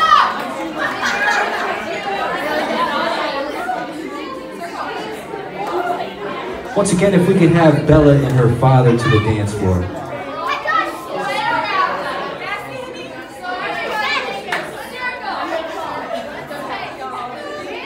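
A crowd of young people chatters and shouts in a large echoing room.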